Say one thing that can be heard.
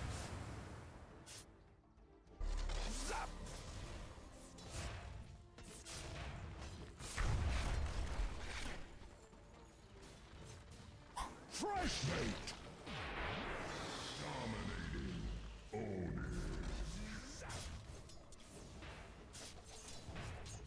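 Weapons strike and clang in quick hits.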